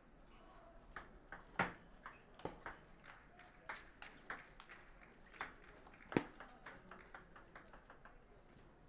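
A ping-pong ball clicks back and forth off paddles and a table in a quick rally.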